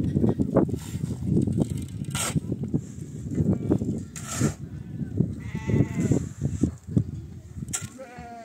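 A shovel scrapes and crunches through gravel.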